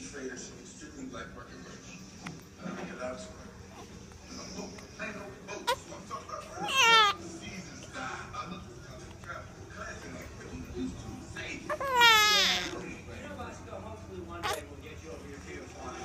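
A baby coos and gurgles softly.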